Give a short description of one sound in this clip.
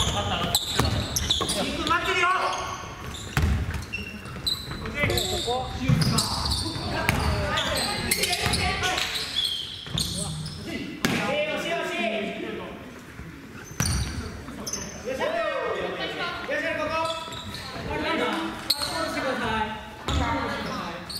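Young men call out to each other during a game.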